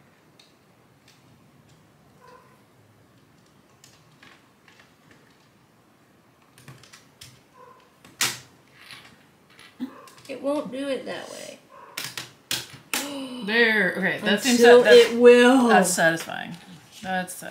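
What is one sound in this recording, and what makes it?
Keys click softly on a small keyboard.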